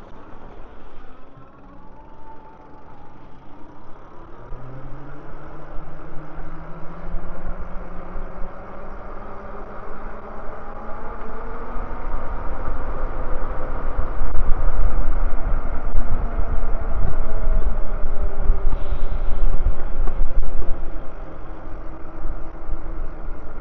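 An electric motor whines, rising and falling in pitch.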